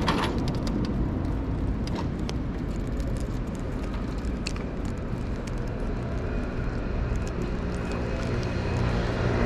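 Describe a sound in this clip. A scooter rattles and clicks as it rolls over pavement.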